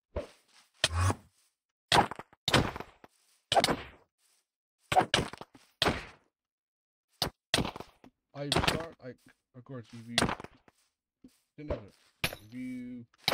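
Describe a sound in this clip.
Sword strikes land with sharp, quick hits.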